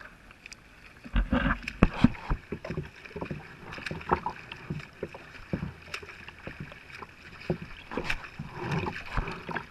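A paddle dips and splashes into the water, dripping.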